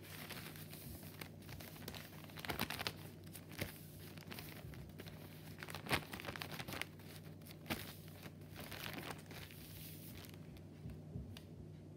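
Paper crinkles and rustles as hands fold it.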